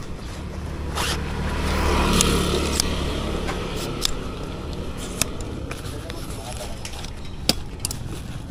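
Metal tripod legs click and clatter.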